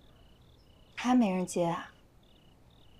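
A young woman speaks briefly into a phone.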